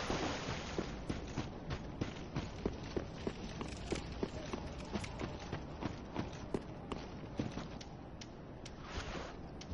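Armoured footsteps clink steadily on stone and earth.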